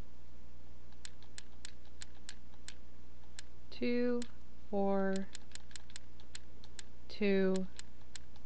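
A combination lock dial clicks as it turns.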